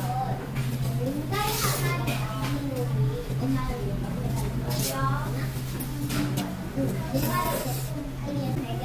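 A man loudly slurps noodles.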